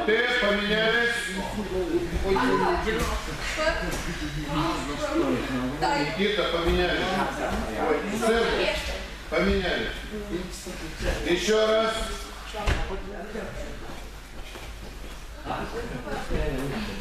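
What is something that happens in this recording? A man speaks loudly in an echoing hall.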